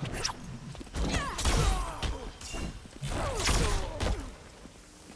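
An energy blast whooshes and crackles.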